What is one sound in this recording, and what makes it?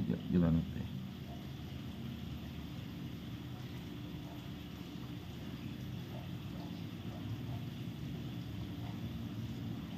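Fingers rub softly on skin.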